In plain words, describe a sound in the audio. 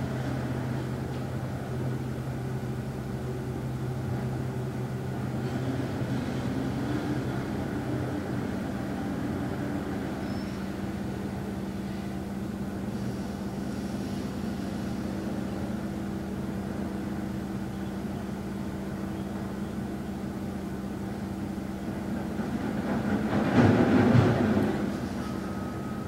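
A man hums a low, steady tone close by.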